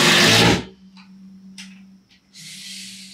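A metal light stand clanks as it is set down on the ground.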